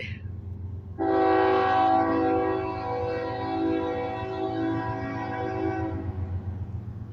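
A train horn blares loudly in a long, steady chord.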